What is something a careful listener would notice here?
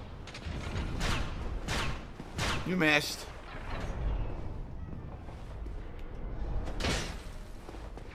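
A blade swooshes through the air.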